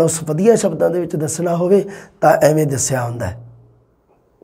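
A man speaks with animation into a close microphone, explaining.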